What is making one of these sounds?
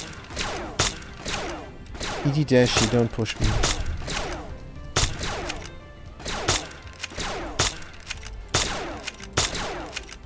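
Gunshots fire again and again, each echoing away.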